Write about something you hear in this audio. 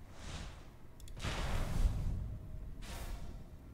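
A fiery spell bursts with a loud whoosh.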